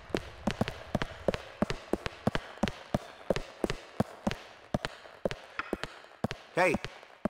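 Footsteps thud quickly up concrete stairs.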